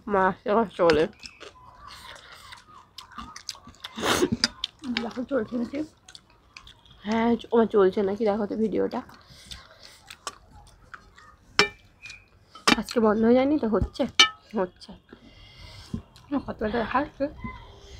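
Hands mix food on plates with soft clicks.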